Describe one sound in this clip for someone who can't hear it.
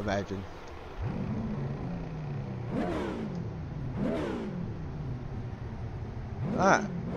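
A race car engine drones and revs.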